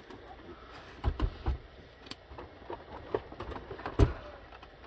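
Plastic casings knock and thud as they are set down on a hard surface.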